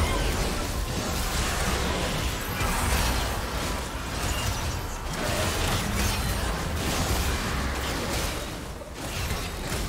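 Magical spell effects whoosh and crackle during a fantasy battle.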